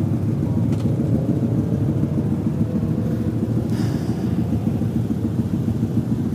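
A motorcycle engine hums at low speed.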